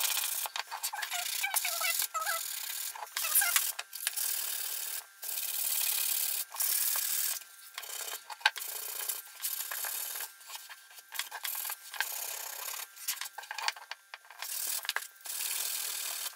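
Sandpaper rasps back and forth on wood in short strokes.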